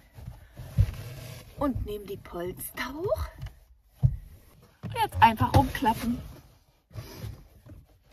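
A cushion thumps and rustles as it is moved.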